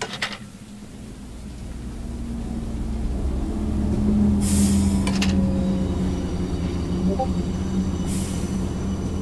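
A heavy machine engine rumbles low and steadily grows louder.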